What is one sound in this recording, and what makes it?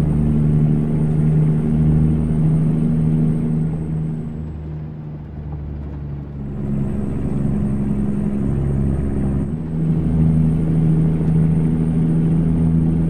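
A truck engine drones steadily, dipping and rising in pitch.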